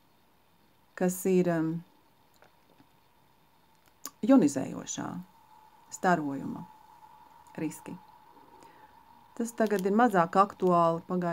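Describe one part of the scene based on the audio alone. A middle-aged woman speaks calmly and close to the microphone, in short bursts with pauses.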